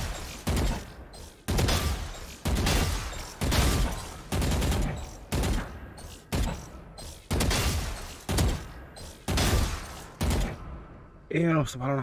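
Rapid gunshots from a video game rifle crack in quick bursts.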